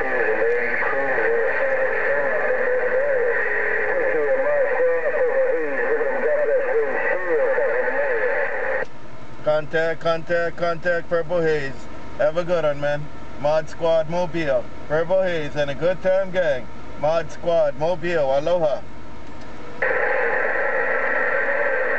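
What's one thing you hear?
Static hisses from a radio receiver.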